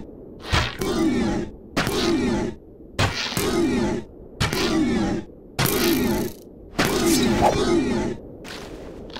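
A monster growls loudly in repeated short bursts.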